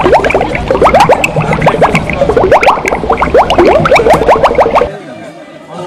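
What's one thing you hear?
A crowd of adults and children cheers and whoops loudly outdoors.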